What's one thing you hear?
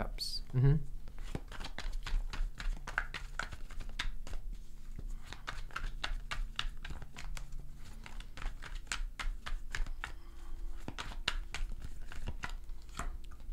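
A small device clicks and taps as it is handled close by.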